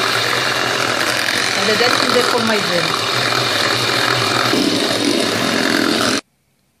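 An electric hand mixer whirs steadily as its beaters whisk liquid in a bowl.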